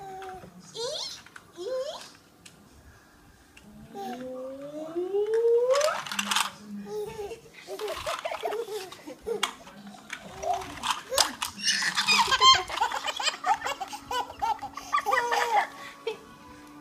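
A toddler babbles and laughs close by.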